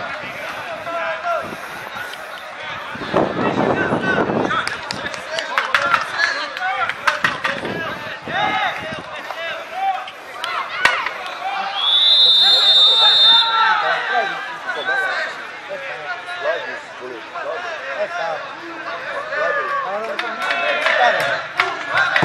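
Several men shout and call out across an open field outdoors.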